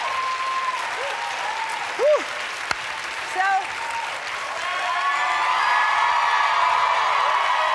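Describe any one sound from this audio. A large crowd cheers and whoops loudly.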